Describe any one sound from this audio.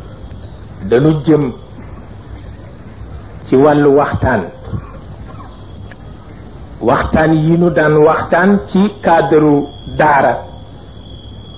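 An elderly man speaks slowly and solemnly into a microphone, in short phrases with pauses.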